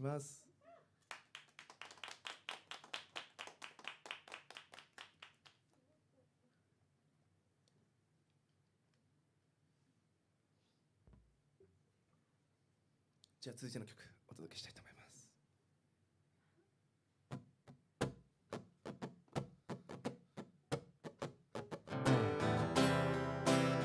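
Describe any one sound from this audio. An acoustic guitar is strummed in rhythmic bursts.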